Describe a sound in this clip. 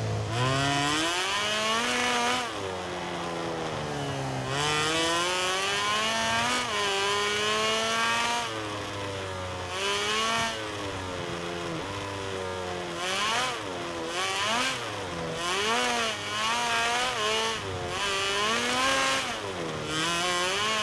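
A motorcycle engine revs high, rising and falling in pitch as gears shift.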